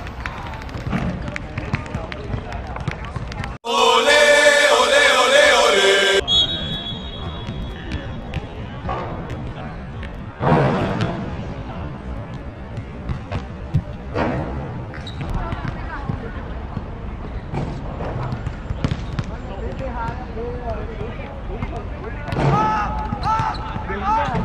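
Young men shout and call out across an outdoor pitch.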